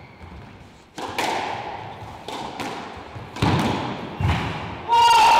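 A squash ball smacks against walls and rackets, echoing in a hard-walled court.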